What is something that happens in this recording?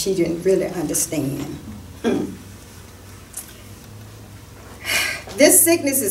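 An elderly woman speaks slowly and calmly, in a room with a slight echo.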